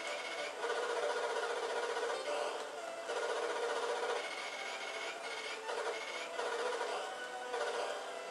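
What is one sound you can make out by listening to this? Retro video game music plays with bleepy chiptune tones.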